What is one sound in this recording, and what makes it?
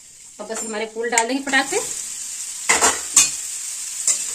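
Food pours into a hot pan and sizzles.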